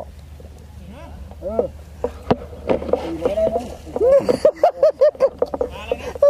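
A fish splashes in the water.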